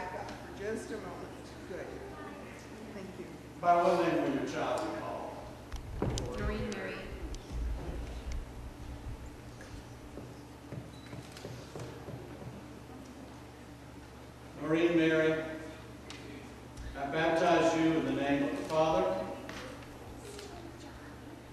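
A man speaks calmly in an echoing hall.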